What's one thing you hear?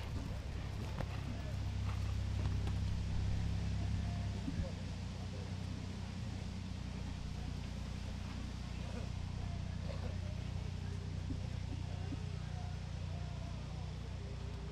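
Hooves thud softly on grass as a horse canters.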